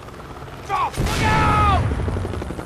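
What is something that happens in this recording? A rocket whooshes past and bursts.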